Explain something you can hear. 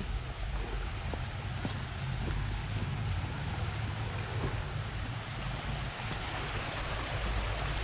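A shallow stream trickles over rocks nearby.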